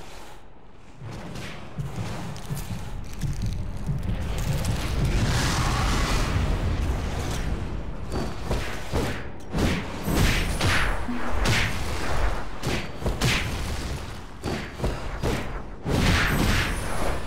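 Weapons clash and blasts of magic boom in a fight.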